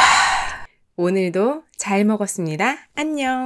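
A young woman speaks cheerfully and brightly, close to a microphone.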